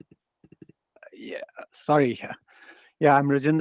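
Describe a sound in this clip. An older man speaks with animation over an online call.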